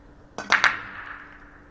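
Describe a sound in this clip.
A cue ball smashes into a rack of billiard balls with loud cracks.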